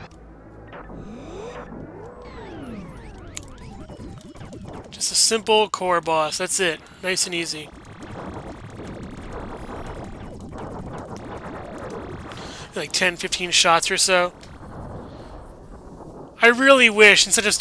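Game laser shots and explosions sound in quick bursts.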